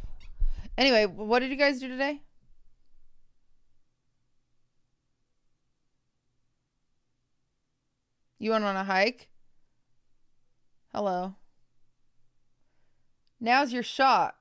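A young woman talks animatedly into a close microphone, with pauses.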